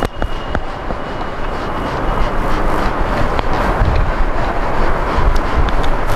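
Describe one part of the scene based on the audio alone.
A sponge rubs across a whiteboard.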